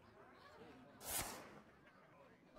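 A short card swish sounds.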